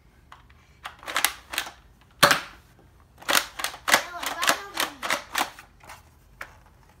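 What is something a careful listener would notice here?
A toy foam dart blaster fires rapid bursts of darts close by.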